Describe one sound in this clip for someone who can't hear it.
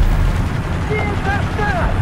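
A tracked vehicle crashes into a concrete barrier.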